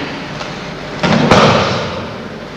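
A body falls and slaps heavily onto a mat.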